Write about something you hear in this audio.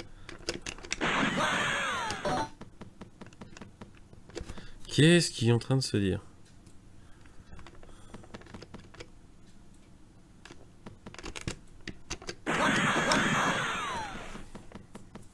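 Retro video game sound effects blip and buzz.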